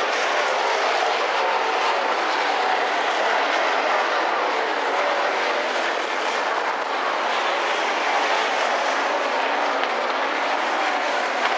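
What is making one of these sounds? A race car engine roars loudly.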